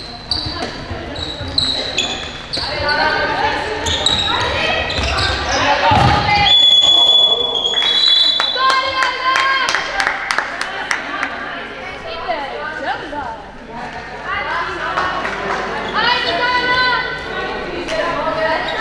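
A ball bounces and thuds on the floor.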